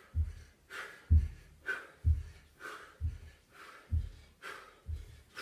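A man breathes out hard in quick, regular puffs.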